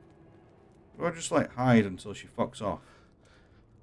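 A young man speaks briefly with animation into a close microphone.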